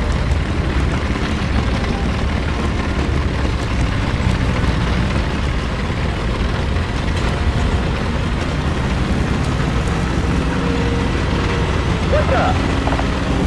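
Tank tracks clank and rattle over the ground.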